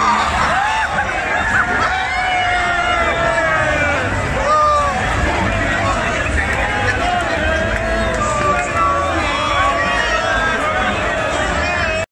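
A large crowd of men and women cheers and shouts outdoors.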